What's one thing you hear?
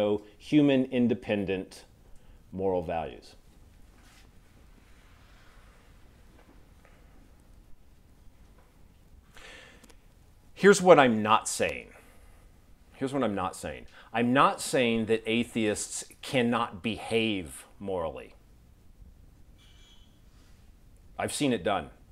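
A middle-aged man speaks calmly through a clip-on microphone, lecturing in pauses.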